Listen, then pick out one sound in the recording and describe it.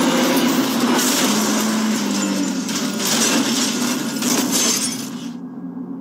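A car crashes with a heavy impact.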